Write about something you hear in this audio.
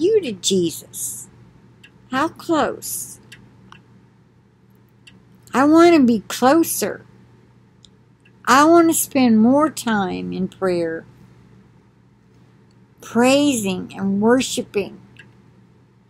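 An older woman speaks calmly and close up, in short bursts with pauses.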